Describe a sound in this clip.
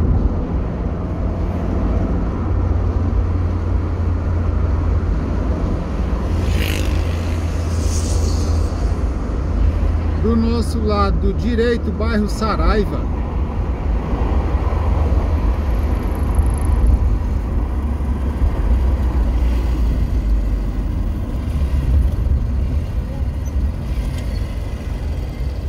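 A car drives along a road, its engine and tyres rumbling low as heard from inside.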